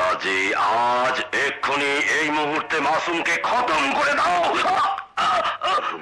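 A man speaks tensely and close by.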